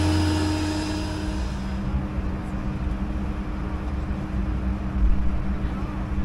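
Air vents in an aircraft cabin drone steadily.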